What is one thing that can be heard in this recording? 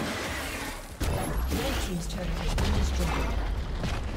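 A video game tower crumbles with a heavy crash.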